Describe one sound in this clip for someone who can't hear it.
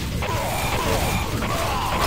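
A rocket explodes.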